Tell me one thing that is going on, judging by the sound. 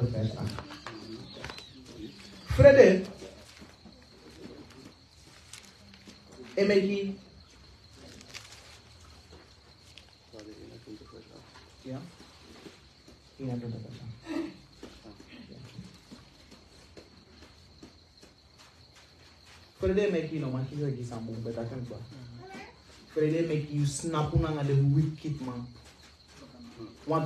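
A young man speaks calmly into a nearby microphone, with pauses.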